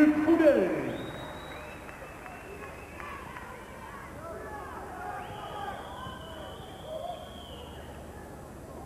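Sneakers squeak sharply.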